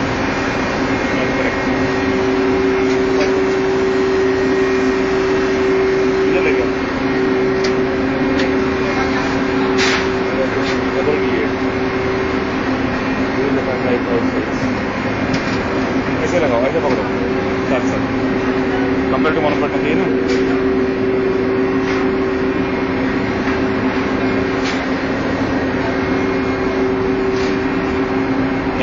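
A large diesel engine runs with a loud, steady drone close by.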